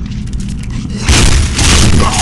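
A rifle fires a loud rapid burst.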